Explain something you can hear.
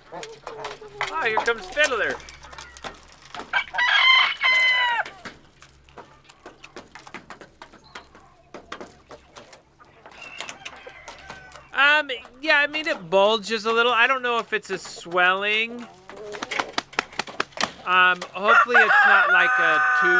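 A rooster crows loudly, several times.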